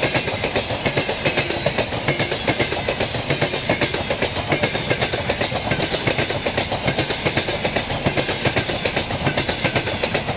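A passenger train rushes past close by with a steady roar.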